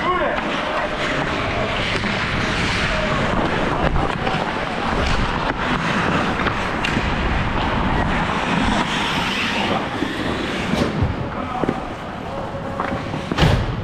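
Ice skates scrape and carve across the ice.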